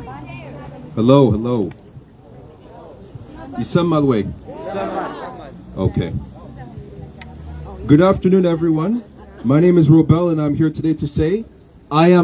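A young man speaks loudly into a microphone through a loudspeaker, outdoors.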